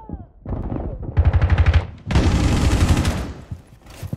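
Rapid gunshots ring out in a short burst.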